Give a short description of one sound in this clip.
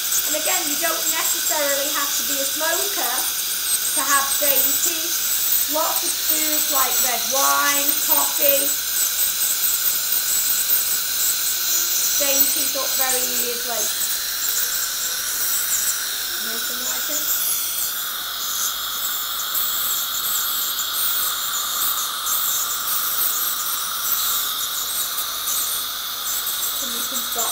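A dental tool whines with a high, thin tone.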